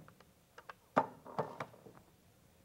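A plastic cup knocks lightly on a glass plate.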